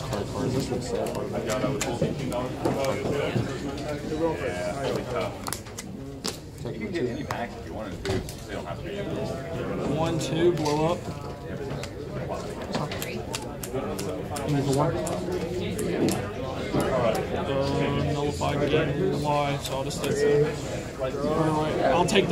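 Playing cards are tapped and slid onto a soft mat.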